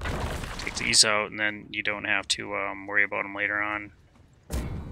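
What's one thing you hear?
A man speaks with animation, close into a microphone.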